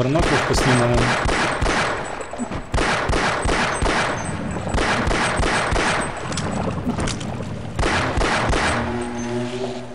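A gun fires rapid bursts of loud shots.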